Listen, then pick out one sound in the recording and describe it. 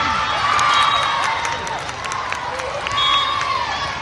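Young women cheer and shout together.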